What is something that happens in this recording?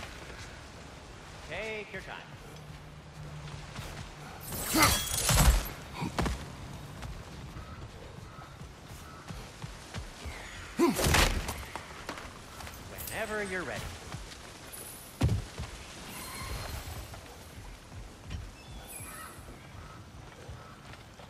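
Heavy footsteps crunch on dirt and wooden boards.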